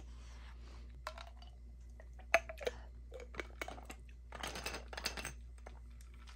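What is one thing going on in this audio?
A plastic lid clicks and scrapes as it is twisted on a glass bottle.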